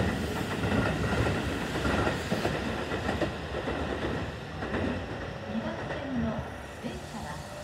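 A second train approaches along the tracks and passes.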